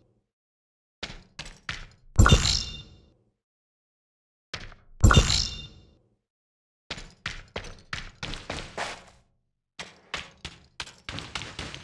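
Quick footsteps patter across hard ground.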